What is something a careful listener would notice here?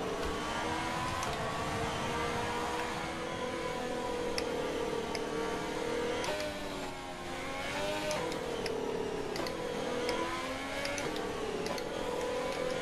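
A racing car engine whines at high revs, rising and dropping in pitch as it shifts gears.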